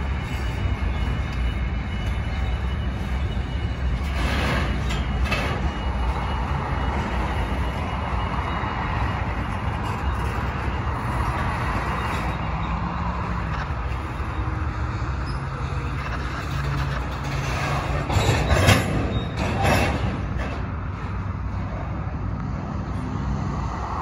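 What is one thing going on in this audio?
Steel wheels clatter and squeal on rails.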